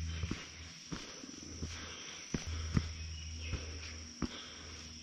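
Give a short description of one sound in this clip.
Footsteps crunch steadily on a dirt trail.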